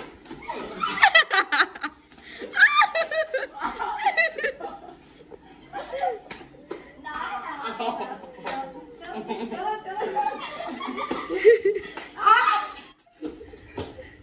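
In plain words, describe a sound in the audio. Young women laugh loudly together.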